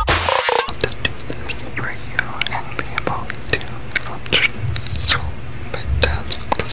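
A young man whispers softly and closely into a microphone.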